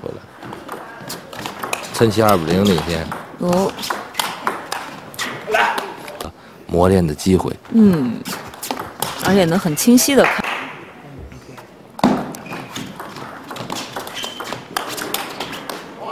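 A ping-pong ball clicks sharply back and forth off paddles and a table.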